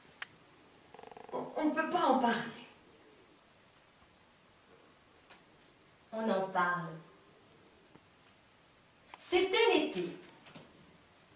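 A woman speaks with feeling in short outbursts, with silent pauses between them.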